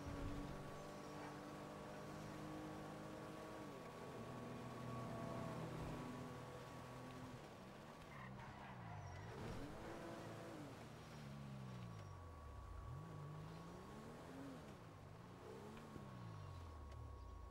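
Tyres rumble over the road.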